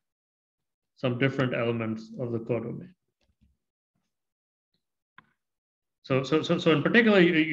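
A man speaks calmly into a close microphone, explaining with pauses.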